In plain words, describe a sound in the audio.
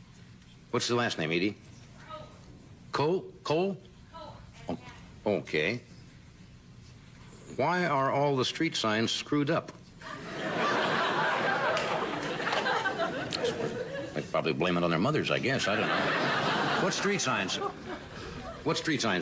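An older man reads out a letter calmly into a microphone, with pauses between phrases.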